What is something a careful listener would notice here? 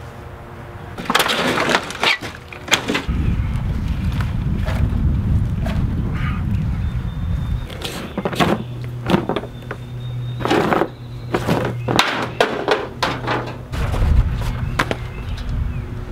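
Wood panels crack and rip as they are torn apart.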